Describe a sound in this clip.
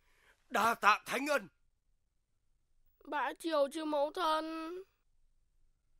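A man speaks loudly and formally.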